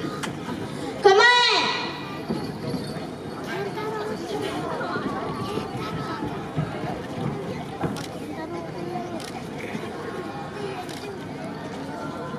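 Young children call out as they dance outdoors.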